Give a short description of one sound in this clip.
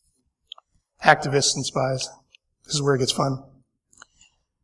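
A man speaks steadily through a microphone.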